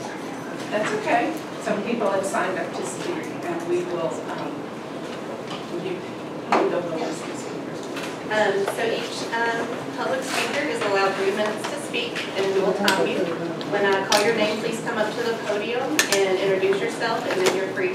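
A man speaks calmly, a bit far off, in a room with a slight echo.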